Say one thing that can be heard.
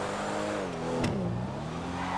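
A car's engine backfires with a sharp pop.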